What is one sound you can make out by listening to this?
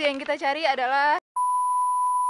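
A young woman speaks cheerfully close to the microphone.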